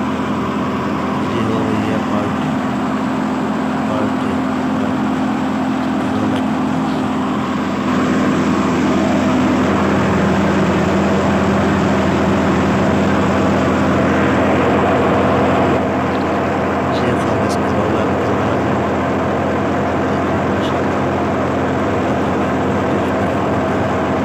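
A threshing machine runs with a steady mechanical drone.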